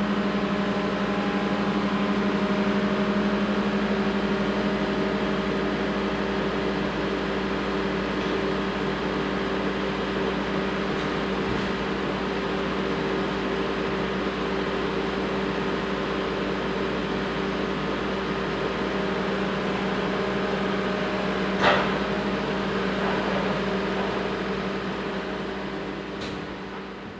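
A machine engine hums steadily nearby.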